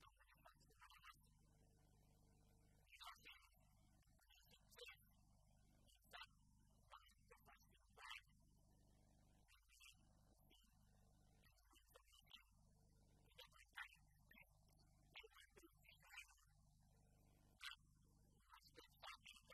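An older man speaks steadily into a microphone in a large, echoing hall.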